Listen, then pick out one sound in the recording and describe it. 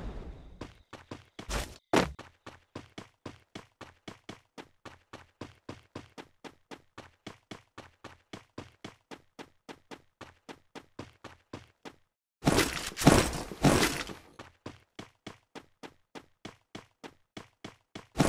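Footsteps run quickly and evenly.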